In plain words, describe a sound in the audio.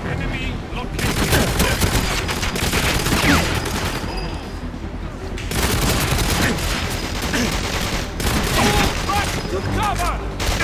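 Rapid gunfire bursts loudly.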